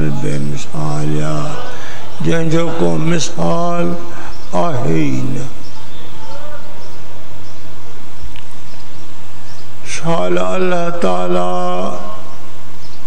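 An elderly man chants slowly into a microphone, with long drawn-out notes.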